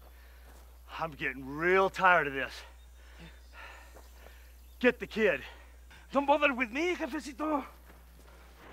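A man shouts angrily.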